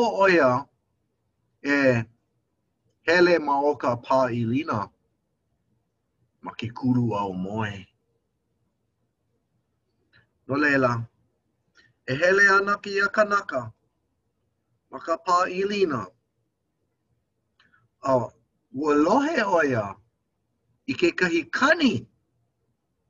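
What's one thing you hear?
A middle-aged man talks calmly and close to a microphone, in short bursts with pauses.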